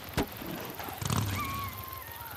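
A motorcycle engine starts up and rumbles.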